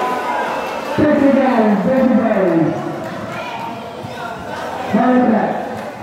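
Men shout out on the court.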